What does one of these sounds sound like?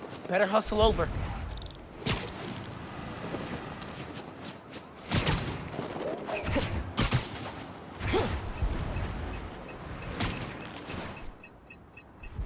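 Air rushes past in loud whooshes during fast swings.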